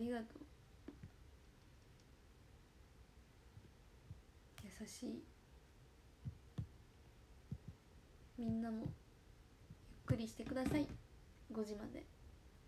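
A young woman speaks softly in short bursts, close to the microphone.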